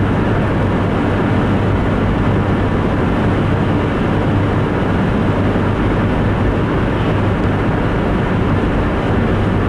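A car engine hums steadily from inside while driving.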